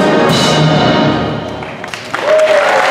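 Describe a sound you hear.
A brass band plays loudly in an echoing hall and stops.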